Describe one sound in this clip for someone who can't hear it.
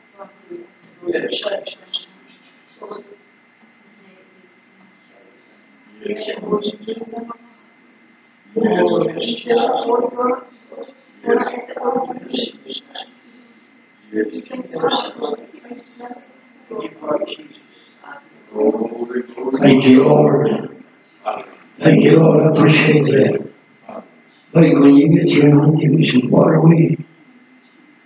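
An elderly man speaks in a large echoing hall.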